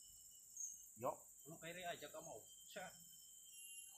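A man speaks briefly in the distance outdoors.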